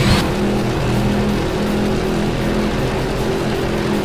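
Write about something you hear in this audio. Tyres skid and spray dirt.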